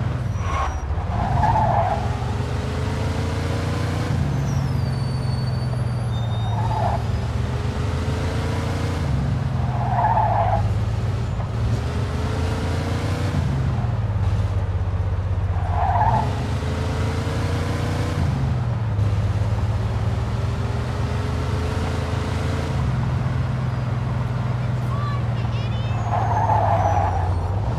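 A car engine hums and revs up and down, again and again.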